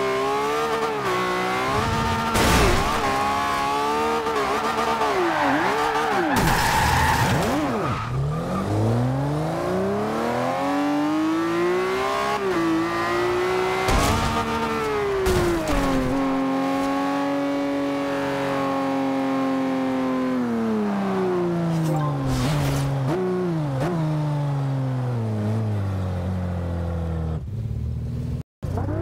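A sports car engine roars and revs up and down.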